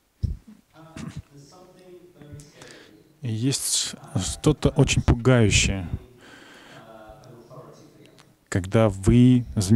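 A middle-aged man speaks calmly into a handheld microphone.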